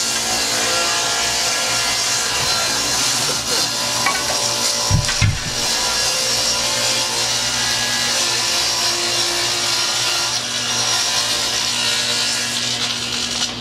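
A table saw runs with a steady whine.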